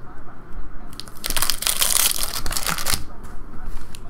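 A foil pack tears open.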